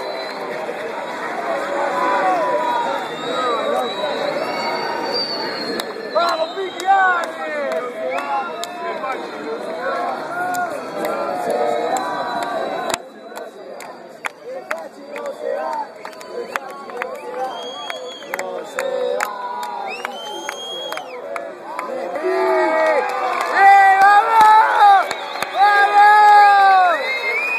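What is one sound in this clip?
A large crowd cheers and shouts loudly nearby.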